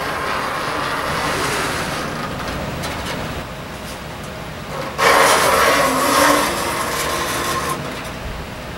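A metal light fixture rattles as it is lifted and moved.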